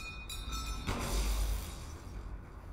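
A pistol fires a single loud shot that echoes.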